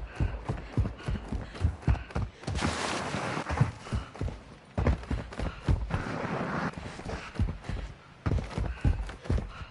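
Quick footsteps thud on hard ground at a running pace.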